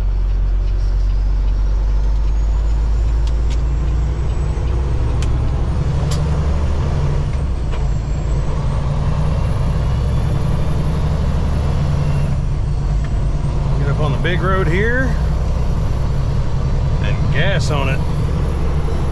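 Tyres roll with a low road roar.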